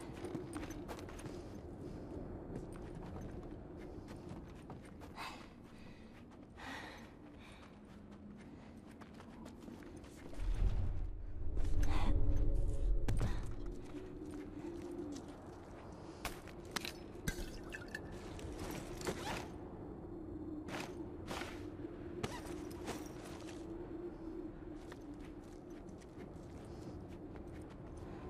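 Footsteps shuffle softly over a floor.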